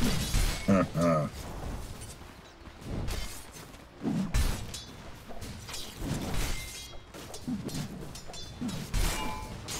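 Magic spells whoosh and crackle as fighters clash.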